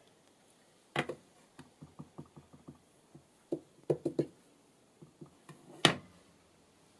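A stamp taps repeatedly on an ink pad.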